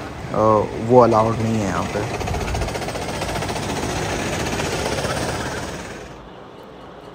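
Go-kart engines buzz loudly as karts race past.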